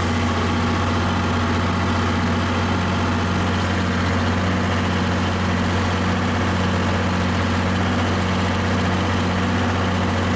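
A tractor engine runs with a steady low drone.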